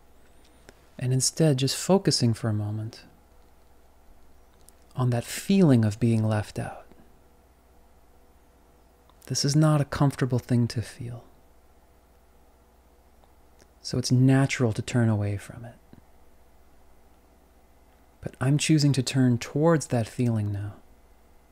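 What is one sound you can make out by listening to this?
A man speaks calmly close to a microphone, in short phrases with pauses.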